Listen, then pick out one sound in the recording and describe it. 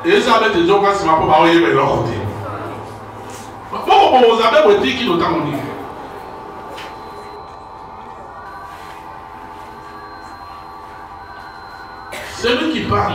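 A man preaches loudly and with animation through a microphone in a large echoing room.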